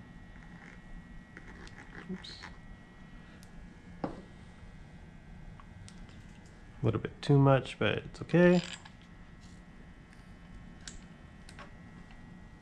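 Small metal engine parts click and tap as they are handled.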